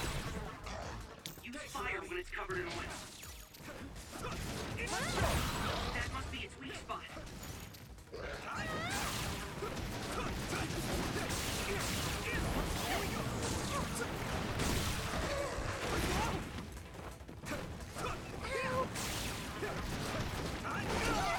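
Blades slash and clang against a monster.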